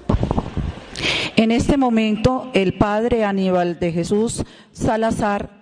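A woman sings into a microphone in a large echoing hall.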